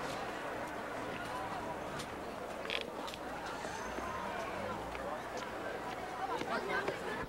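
Footsteps tap on pavement as people walk outdoors.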